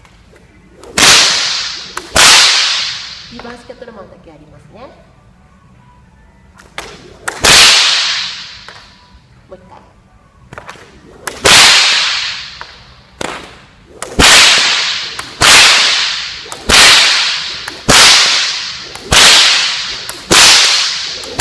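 A whip cracks sharply again and again, echoing around a large hall.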